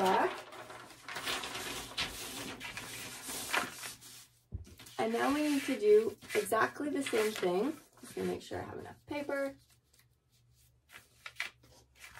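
Paper rustles and slides across a table.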